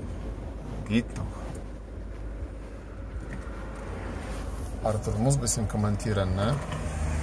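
A vehicle's engine hums low and steady from inside the cab.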